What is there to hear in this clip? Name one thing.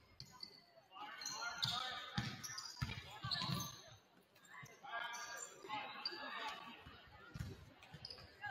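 Young women shout and call out across the court.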